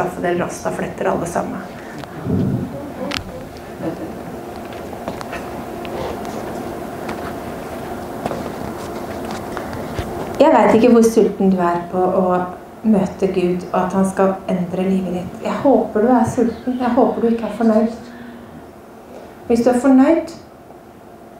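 A woman speaks with animation into a microphone in an echoing hall.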